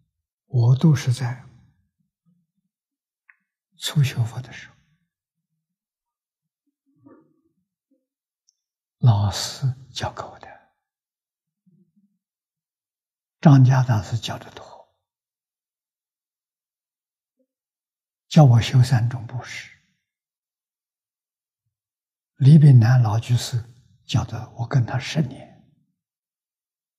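An elderly man speaks calmly in short phrases with long pauses, close to a microphone.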